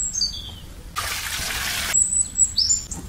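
Liquid pours and splashes into a pot.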